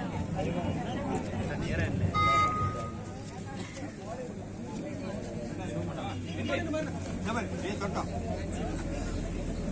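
A crowd of men chatters and calls out outdoors.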